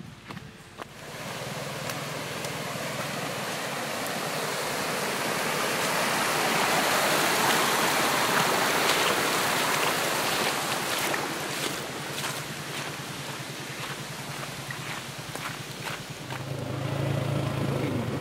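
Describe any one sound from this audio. Water rushes and splashes loudly over rocks.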